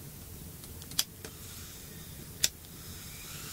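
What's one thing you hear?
A lighter clicks as it is struck.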